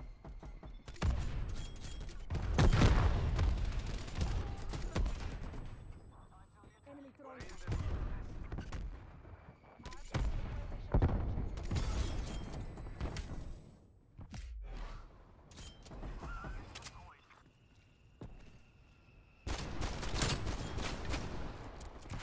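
Gunshots fire in loud, quick bursts.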